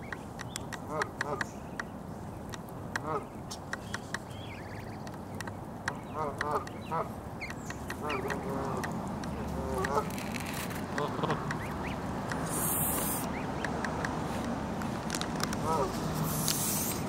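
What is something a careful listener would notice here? Goslings peep softly up close.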